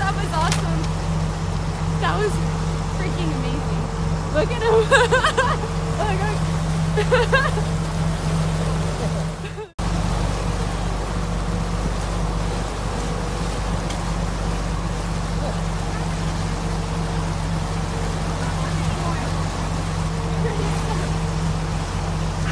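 Water churns and splashes behind a moving boat.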